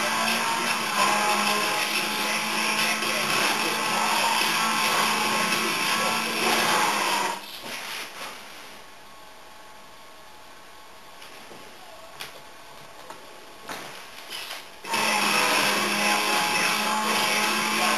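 Video game music plays through a speaker.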